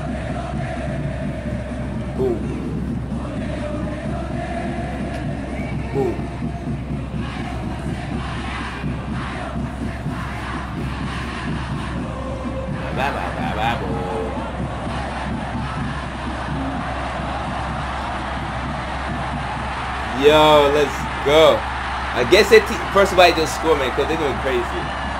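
A stadium crowd chants and roars steadily, heard through speakers.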